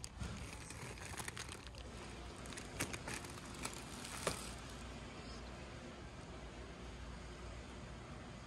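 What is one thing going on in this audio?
A plastic bag of bread crinkles in a hand.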